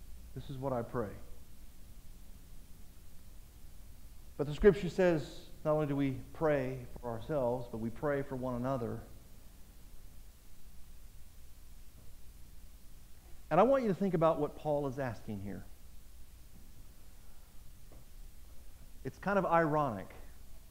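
A man speaks calmly through a microphone, with pauses, in an echoing hall.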